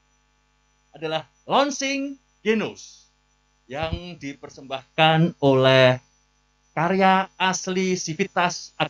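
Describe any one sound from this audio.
A woman speaks clearly through a microphone, announcing.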